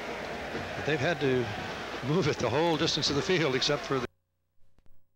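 A large crowd cheers and murmurs in a stadium.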